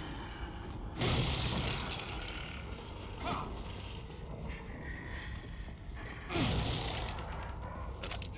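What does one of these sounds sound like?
Loose wooden debris clatters and rustles as it is searched through.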